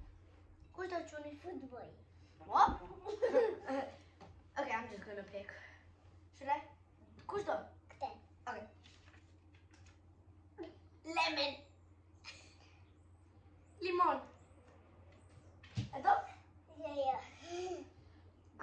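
A small boy talks and laughs close by.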